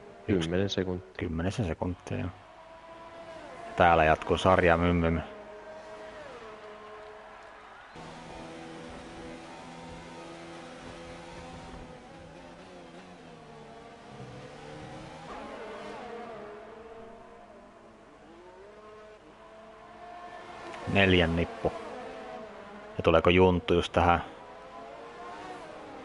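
Racing car engines whine at high revs, rising and falling as they pass.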